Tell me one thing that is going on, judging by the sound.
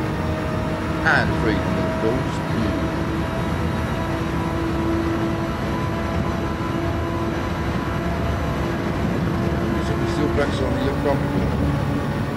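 A man speaks briefly into a headset microphone.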